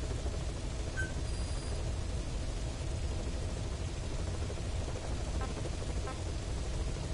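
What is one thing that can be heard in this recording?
Short electronic menu beeps sound a few times.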